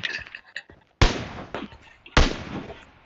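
A rifle fires two loud shots that ring out briefly.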